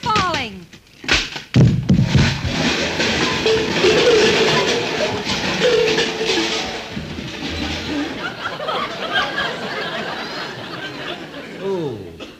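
An old radio hisses and crackles with static.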